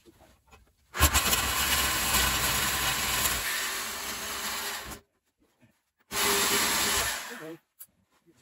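A power tool whirs loudly in short bursts.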